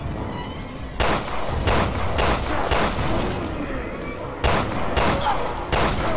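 A handgun fires single shots, one after another, with a short echo.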